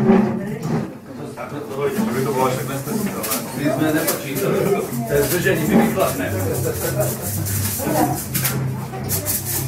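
A crowd of men and women chatters loudly in a busy room.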